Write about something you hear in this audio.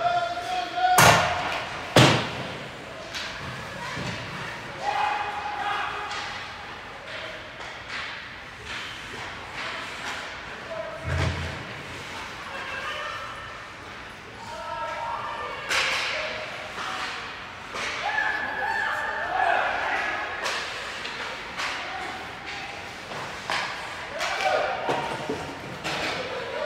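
Hockey sticks clack sharply against a puck and the ice.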